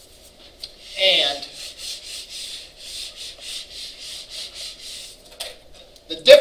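An eraser rubs rhythmically across a whiteboard.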